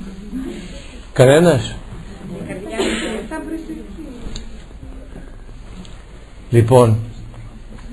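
An elderly man chants in a deep, wavering voice.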